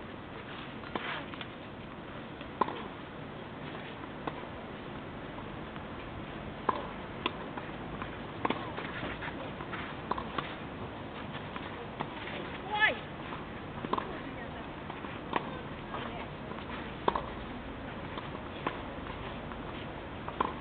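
Tennis balls are struck with rackets in sharp pops, back and forth outdoors.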